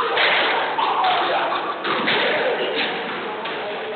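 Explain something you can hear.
A squash ball smacks hard against racquets and walls in an echoing court.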